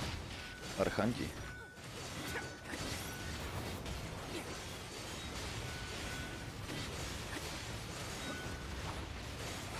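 Metal weapons clash and strike in a fight.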